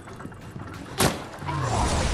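A handgun fires a single shot.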